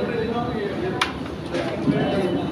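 A striker is flicked and clicks sharply across a wooden game board.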